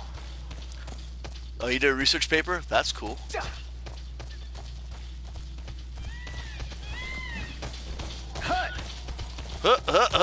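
A large bird's feet patter quickly along a dirt path.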